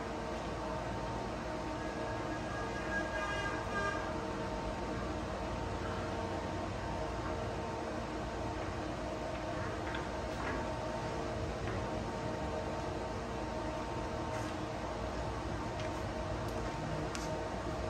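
A machine fan hums and whirs steadily.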